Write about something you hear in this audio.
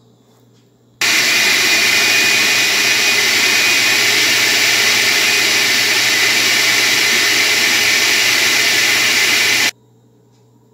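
A blender whirs loudly and steadily.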